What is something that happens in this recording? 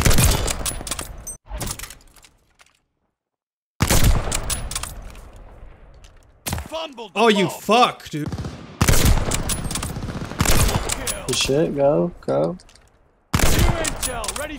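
A sniper rifle fires loud, sharp shots, one at a time.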